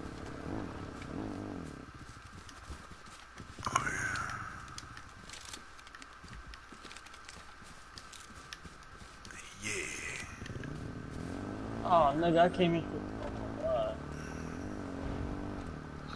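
A quad bike engine revs and drones nearby.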